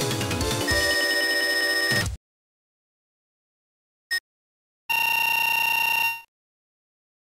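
Electronic chimes ring out as a game's bonus points are tallied.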